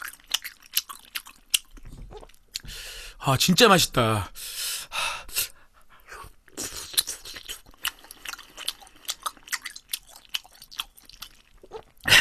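A young man chews food with wet smacking sounds close to a microphone.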